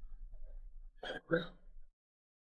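A young woman speaks briefly and quietly.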